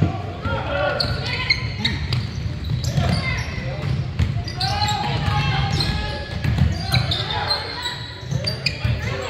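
Teenage boys shout to each other across the court.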